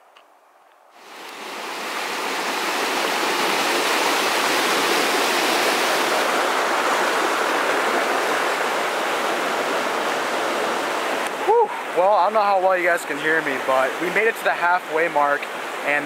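A river rushes loudly over rocks close by.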